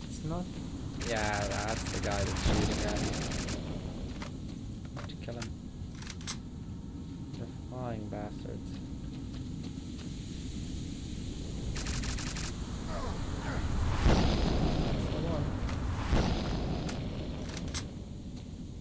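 Flames roar out in loud bursts.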